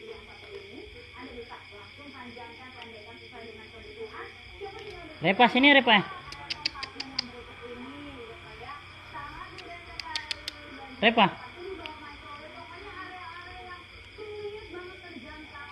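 A cat crunches dry cat food.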